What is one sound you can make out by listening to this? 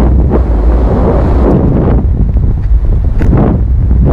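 Paraglider fabric flaps and rustles in the wind.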